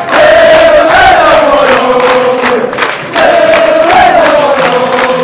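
A large crowd of men chants loudly close by.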